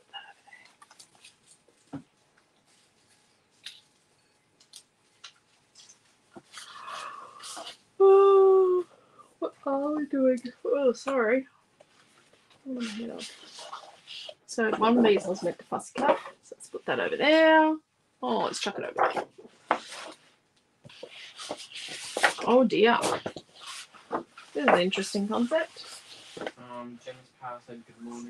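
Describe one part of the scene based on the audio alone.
Sheets of paper rustle and slide as they are shuffled and flipped.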